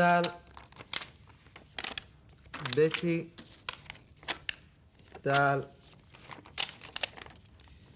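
Paper crinkles as a young man unfolds a note.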